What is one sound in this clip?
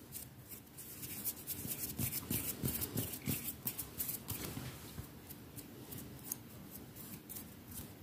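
Fingers rub and brush together close by.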